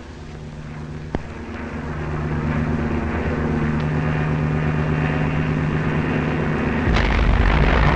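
Aircraft engines drone steadily overhead.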